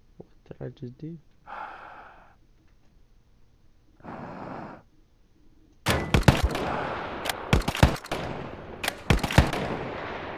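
Breath rasps heavily through a gas mask.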